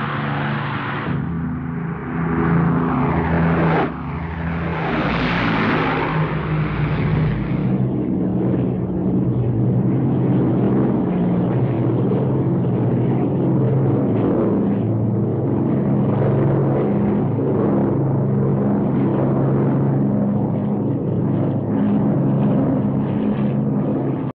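Propeller aircraft engines drone loudly overhead.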